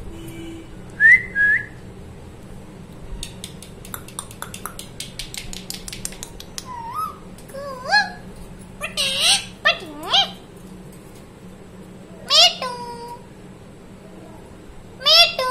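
A parrot squawks and chirps close by in short, shrill calls.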